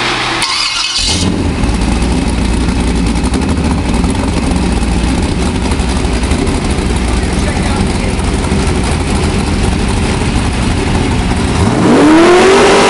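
An engine roars loudly.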